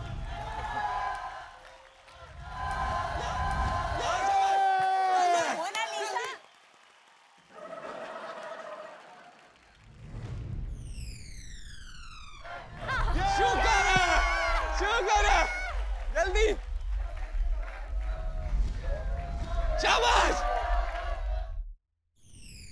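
A young man shouts with excitement.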